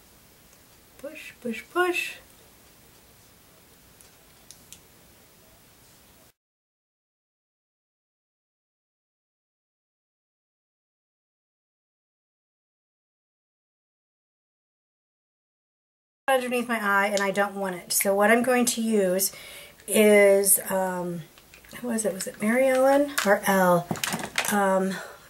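A middle-aged woman speaks calmly and close to a microphone.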